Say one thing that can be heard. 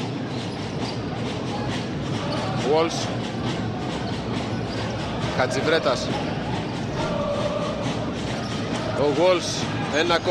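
A large crowd cheers and chants steadily in an echoing arena.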